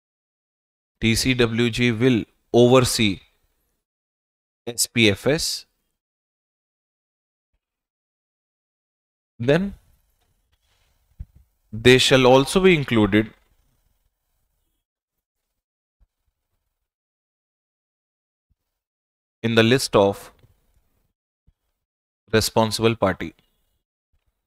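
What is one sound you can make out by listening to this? A man speaks into a close microphone in short bursts, with pauses between them.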